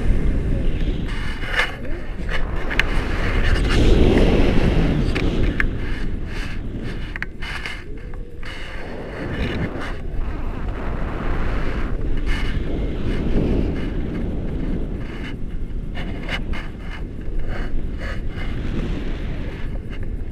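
Wind rushes loudly past a microphone in flight.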